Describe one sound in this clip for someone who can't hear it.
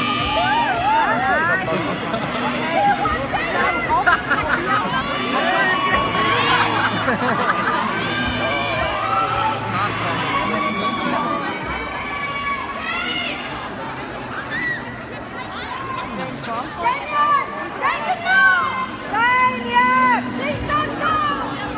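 A large crowd of fans shouts and screams excitedly nearby, outdoors.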